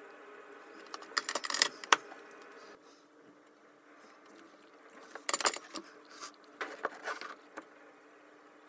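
Metal clips and wires click and rustle as hands handle them.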